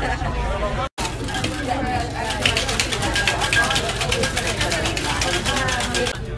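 Young women shout and cheer.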